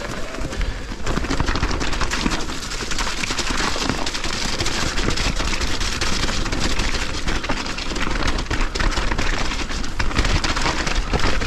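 Wind rushes past loudly, outdoors.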